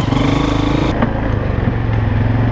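A quad bike engine rumbles up close.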